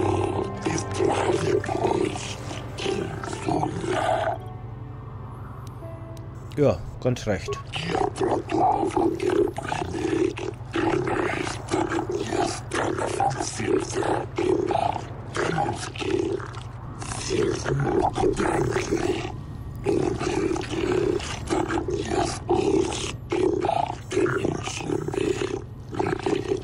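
A creature speaks in a deep, croaking alien voice.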